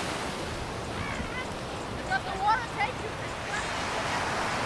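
Young women call out briefly nearby.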